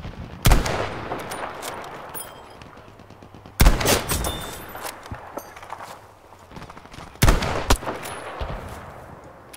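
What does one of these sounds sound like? A rifle fires loud shots that echo and roll away.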